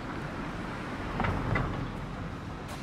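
A car drives slowly past close by.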